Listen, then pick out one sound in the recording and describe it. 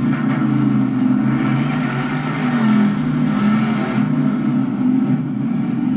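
A racing game's engine roars steadily through a television speaker.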